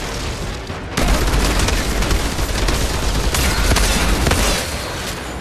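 Rapid gunfire rattles and crackles.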